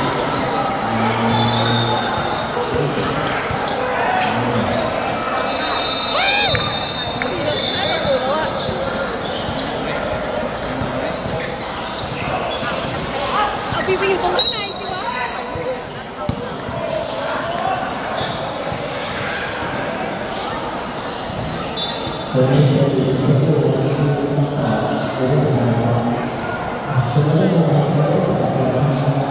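A crowd of young people chatter and call out nearby.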